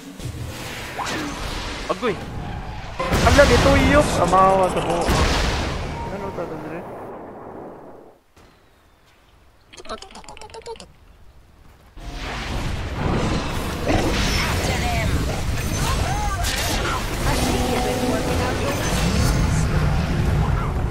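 Magic spells burst and crackle amid clashing fighting sounds.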